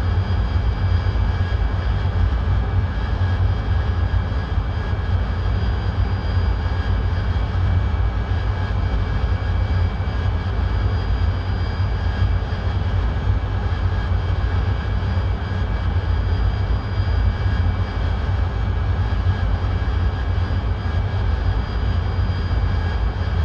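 A jet engine rumbles and whines steadily.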